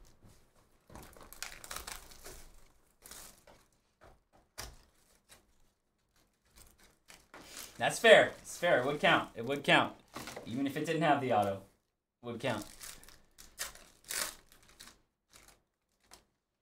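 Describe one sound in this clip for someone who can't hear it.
Cardboard and foil wrappers rustle and tear as packs are opened.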